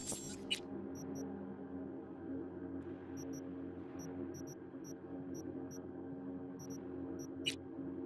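Soft electronic blips tick now and then.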